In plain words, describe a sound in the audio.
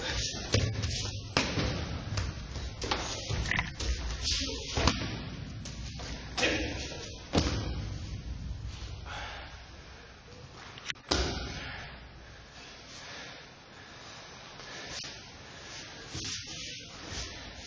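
Bare feet shuffle and stamp on a mat.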